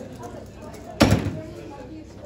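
A sharp knock sounds on a table.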